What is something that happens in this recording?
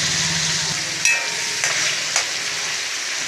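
A spatula scrapes and clicks against a pan.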